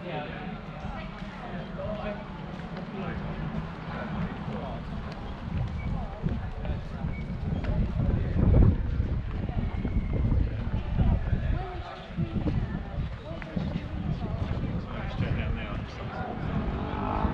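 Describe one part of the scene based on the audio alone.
Men and women chat as they walk past outdoors.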